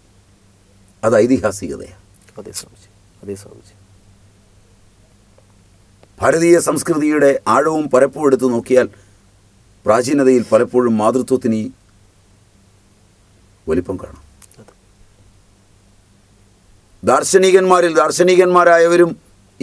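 A middle-aged man speaks with animation into a close microphone, in bursts with pauses.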